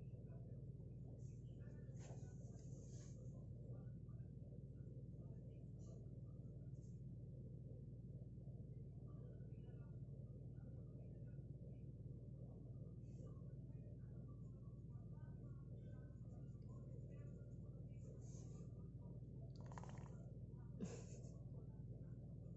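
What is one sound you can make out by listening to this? A cat purrs loudly and steadily close by.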